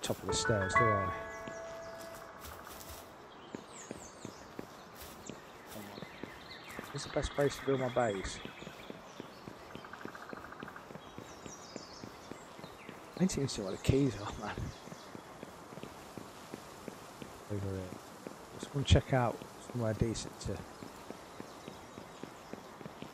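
Quick light footsteps patter on stone.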